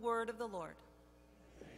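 A middle-aged woman speaks calmly through a microphone in a large echoing hall.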